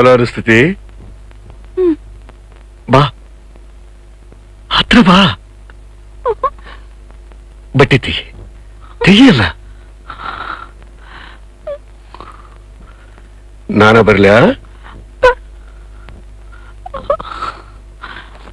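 A young woman speaks in a frightened voice.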